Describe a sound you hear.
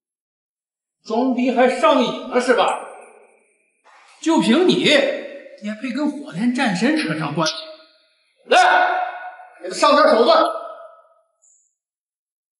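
A middle-aged man speaks sternly and with rising anger, close by.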